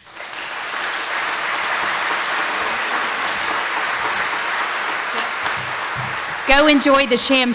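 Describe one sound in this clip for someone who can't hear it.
A crowd applauds loudly in a large echoing hall.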